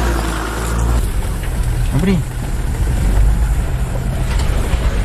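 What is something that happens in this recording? A car jolts and rattles over a bumpy dirt track.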